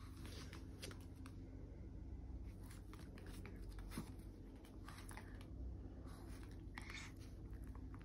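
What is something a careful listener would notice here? A dog's claws tap on a hard floor.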